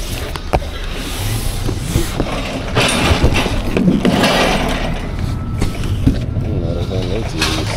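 Cardboard boxes scrape and rub together as they are handled.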